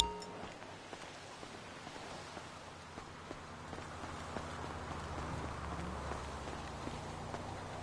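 Footsteps run on a gravel road.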